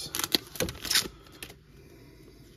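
A paper wrapper crinkles and tears.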